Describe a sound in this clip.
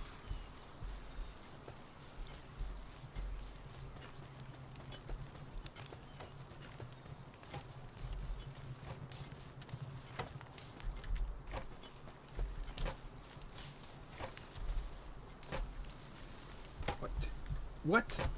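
Footsteps thud softly on grass and dirt.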